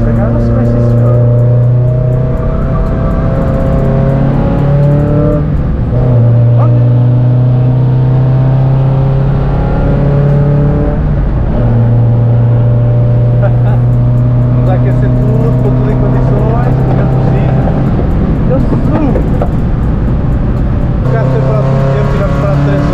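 A car engine roars loudly close by, rising and falling in pitch as it shifts gears.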